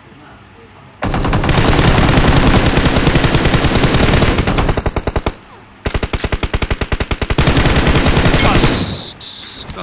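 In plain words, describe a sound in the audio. Rapid automatic gunfire rattles in fast bursts.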